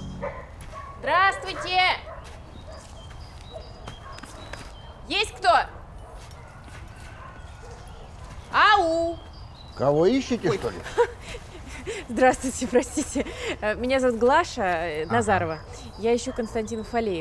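A young woman calls out and talks brightly nearby.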